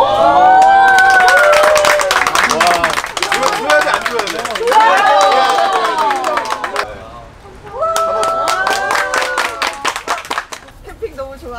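A group of people clap along in rhythm.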